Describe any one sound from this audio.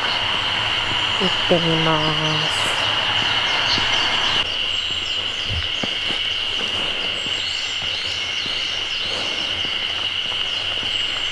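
Footsteps scuff softly on a paved road.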